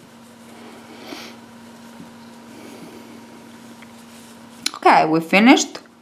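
A crochet hook softly rubs and pulls through yarn.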